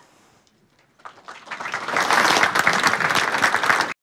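An audience applauds, growing louder.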